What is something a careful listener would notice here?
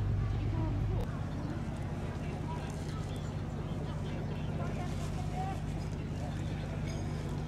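Men and women chat quietly at a distance outdoors.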